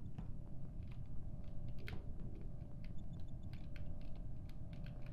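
Light footsteps patter quickly on a hard floor.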